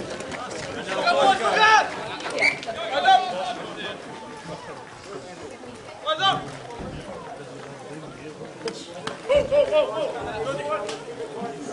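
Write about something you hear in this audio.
Young men shout loudly to each other outdoors.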